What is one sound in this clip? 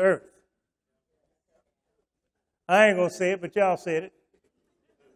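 A middle-aged man speaks with emphasis into a microphone.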